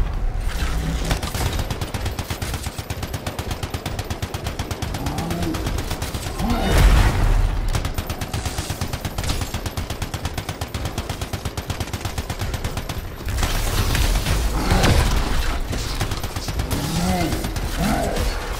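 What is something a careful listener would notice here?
Rapid gunfire rattles steadily.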